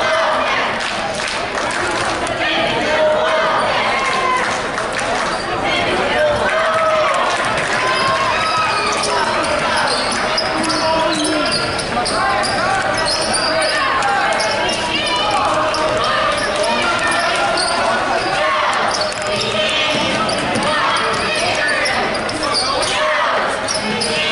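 A crowd in a large echoing gym chatters and calls out throughout.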